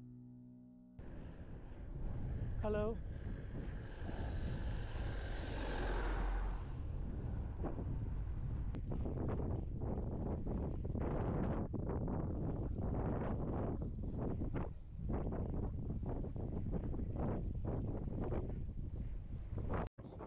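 Wind buffets a microphone on a moving bicycle.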